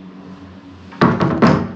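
Wooden cabinet doors knock and click shut.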